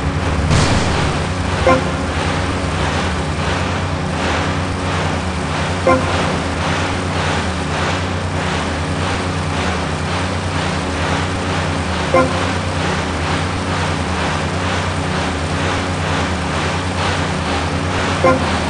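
Water splashes and churns behind a speeding boat.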